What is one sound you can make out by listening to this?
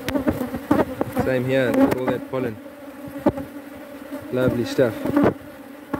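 Bees buzz in a steady hum.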